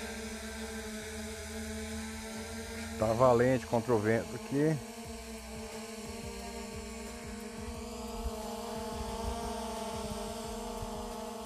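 A drone hovers overhead with a steady high whine.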